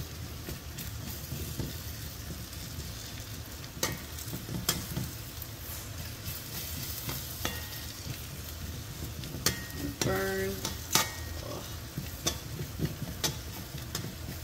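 Fingers scatter grains into a pan with soft taps.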